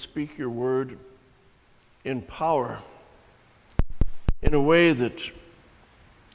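An elderly man speaks slowly and with feeling, close to a microphone.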